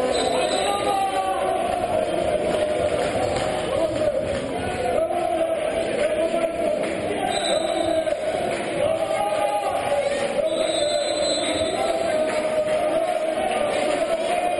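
A crowd chants and cheers in a large echoing hall.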